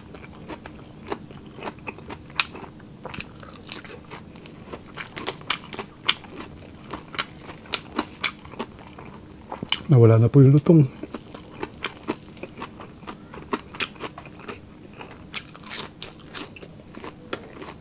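A man chews crunchy food loudly and close to a microphone.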